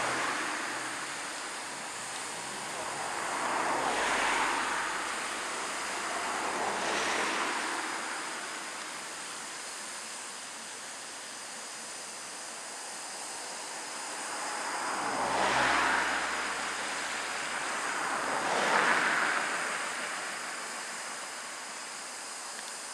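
A steam locomotive hisses steadily.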